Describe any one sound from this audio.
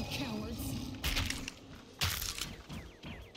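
A spiked mace strikes with a loud crackling zap.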